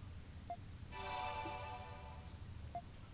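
A bright shimmering chime rings out.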